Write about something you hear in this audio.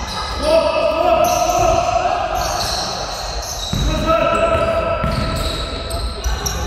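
Sneakers squeak sharply on a wooden floor in an echoing hall.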